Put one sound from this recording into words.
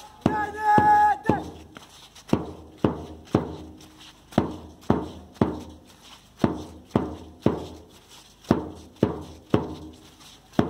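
A large group marches past, feet stepping in a steady rhythm.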